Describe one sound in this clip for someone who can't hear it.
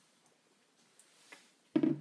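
A plastic bottle is handled close by.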